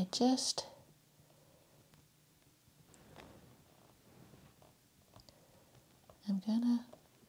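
A paintbrush dabs softly on canvas.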